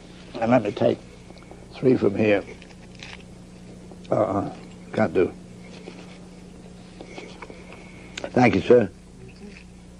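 An elderly man speaks in short bursts, close by.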